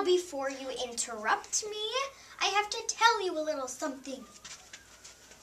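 Young girls sing together close by.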